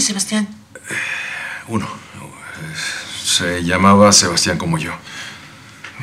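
A man speaks calmly and seriously nearby.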